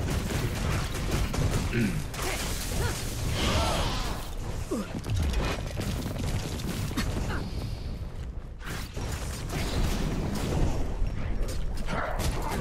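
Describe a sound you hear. Spell effects crackle and burst in a video game fight.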